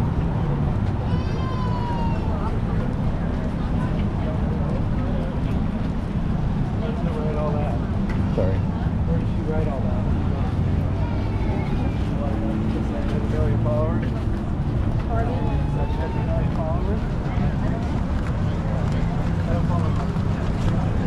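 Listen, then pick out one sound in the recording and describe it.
A crowd of men and women chatter in the distance.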